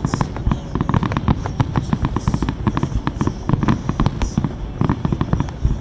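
Fireworks crackle and pop rapidly in the distance.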